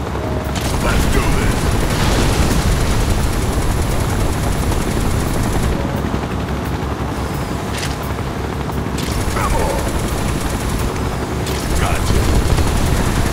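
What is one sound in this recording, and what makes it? A pistol fires in single shots.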